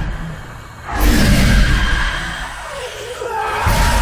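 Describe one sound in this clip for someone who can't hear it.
A ghostly roar and whoosh burst out loudly.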